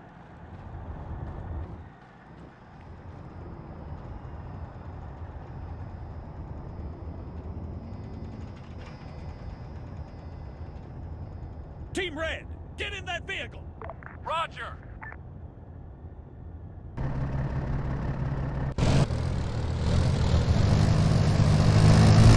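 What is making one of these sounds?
An armoured vehicle's engine rumbles low and steadily.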